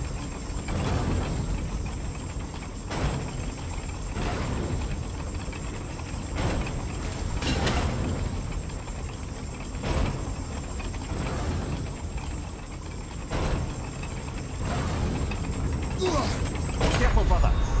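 Huge gears grind and rumble steadily with a deep mechanical roar.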